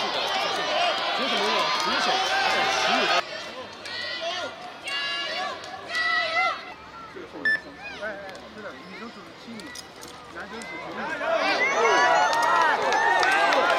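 A crowd of onlookers cheers and shouts.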